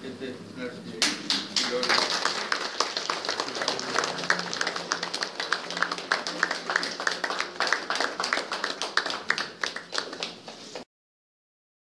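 A group of people applaud warmly in a room.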